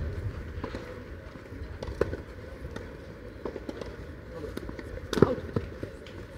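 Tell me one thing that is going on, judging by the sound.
Tennis balls are struck with rackets, giving sharp pops across the court.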